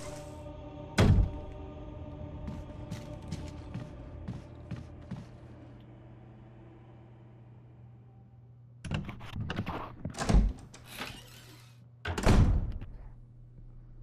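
A wooden door shuts with a heavy thud.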